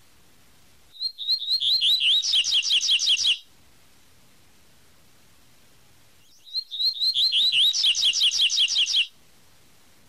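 A small bird sings a quick, rapidly repeated whistling song in two bursts.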